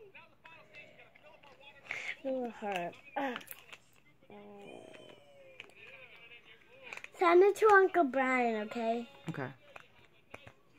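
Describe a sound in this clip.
Plastic crinkles in a young girl's hands.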